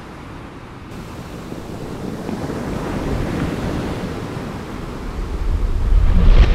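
Waves break and rush over a reef.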